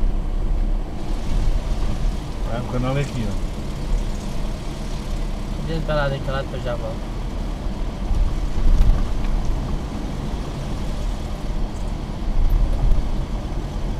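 A car drives steadily along a road with a low rumble of engine and tyres.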